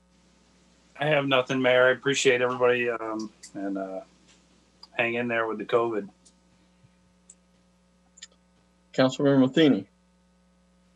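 An elderly man speaks calmly over an online call.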